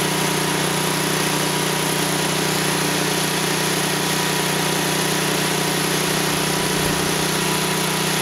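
A machine motor hums steadily nearby.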